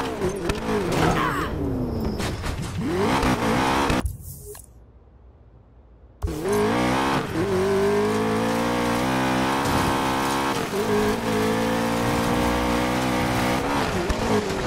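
A car engine roars and revs hard.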